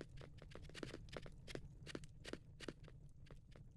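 Soft footsteps patter on stone.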